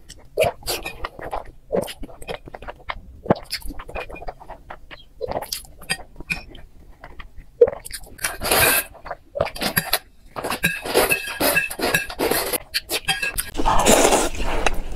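A woman bites and chews soft food close to a microphone with wet smacking sounds.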